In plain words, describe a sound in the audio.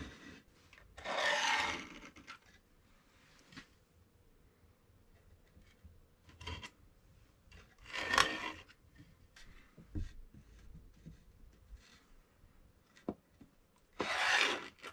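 Hands slide and scrape wooden boards on a table.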